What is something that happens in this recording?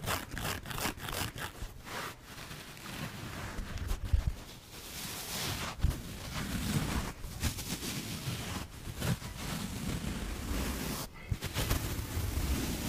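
Fingernails scratch and tap on a porous sponge close to the microphone.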